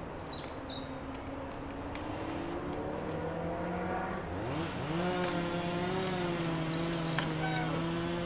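Bicycle tyres crunch on gravel as a cyclist approaches.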